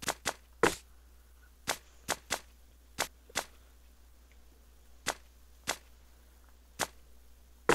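Short sharp menu clicks sound now and then as options are picked.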